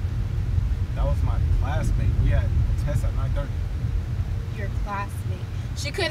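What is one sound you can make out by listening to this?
A young man talks over a car's rumble.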